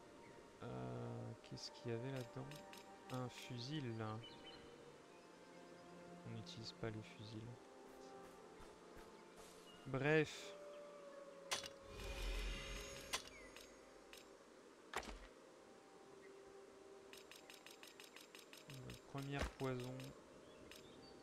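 A man talks calmly and close to a microphone.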